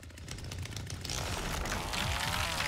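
A chainsaw revs loudly.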